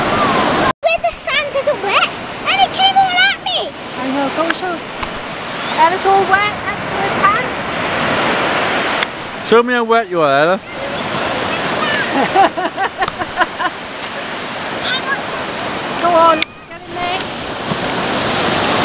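Waves wash onto a beach in a steady rush.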